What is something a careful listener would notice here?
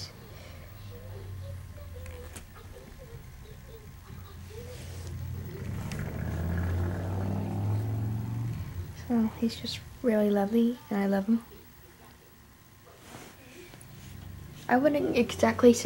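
A toy rustles and bumps against a quilt.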